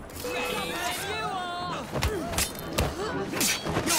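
Fists land heavy blows in a brawl.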